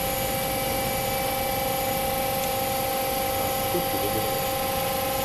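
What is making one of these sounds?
A stationary train hums steadily with a high electric whine.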